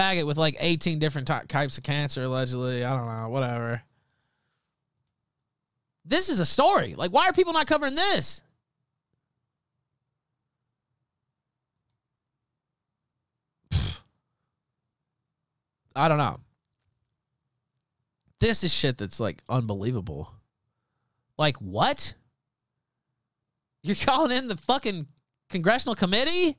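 A man talks with animation into a close microphone, with long pauses.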